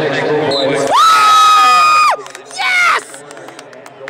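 A referee blows a loud, shrill whistle twice.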